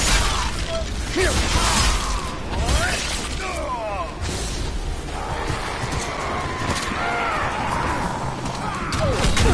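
Footsteps rustle and crunch through undergrowth.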